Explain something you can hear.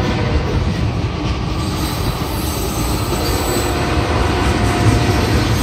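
A long freight train rumbles past close by, its wheels clacking on the rails.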